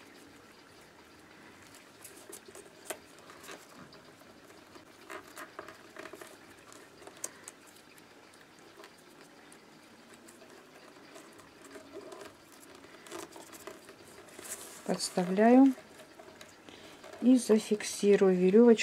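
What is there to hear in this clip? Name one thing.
Paper tubes rustle and tap softly as they are woven.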